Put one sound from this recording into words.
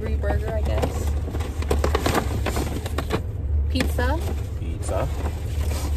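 A low rumble fills a car's cabin.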